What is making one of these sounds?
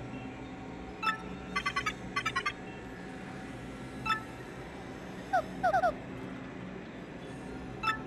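A computer console chirps with quick runs of short electronic beeps.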